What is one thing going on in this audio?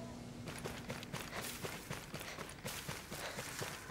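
Leaves and bushes rustle as a person pushes through them.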